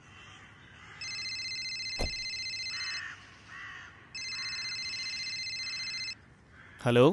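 A phone rings with a bright electronic tone.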